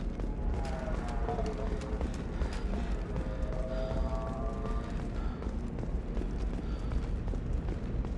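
Heavy boots thud quickly on a hard metal floor.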